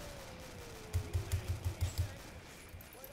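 A heavy gun fires in a rapid burst of thuds.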